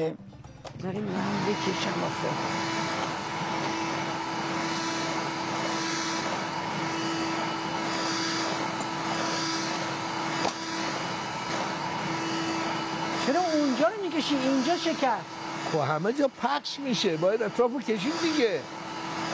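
A vacuum cleaner hums steadily.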